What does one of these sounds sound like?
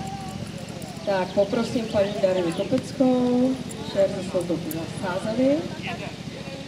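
A woman calls out loud, sharp commands to a dog nearby.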